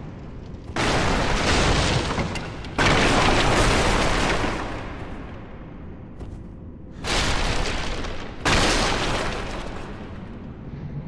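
Loud rushing bursts sound as an armoured warrior rolls across stone, again and again.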